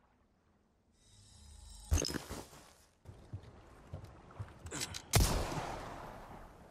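Water laps and splashes nearby.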